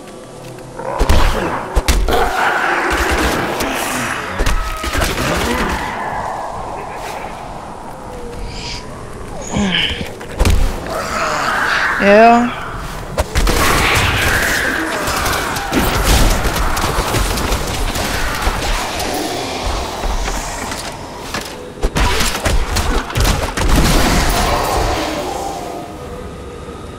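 Weapons and blows thud in quick succession.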